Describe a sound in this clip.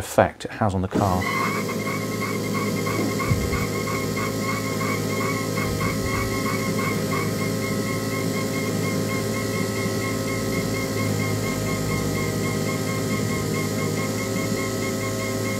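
A machine starts and runs with a steady motor hum and a pulsing whine.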